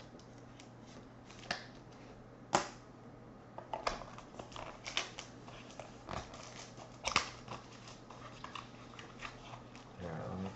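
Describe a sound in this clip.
Plastic card sleeves rustle and click as hands handle them.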